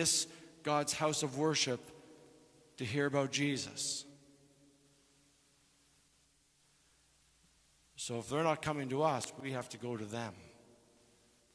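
A man speaks into a microphone in a large echoing hall, in short bursts with pauses.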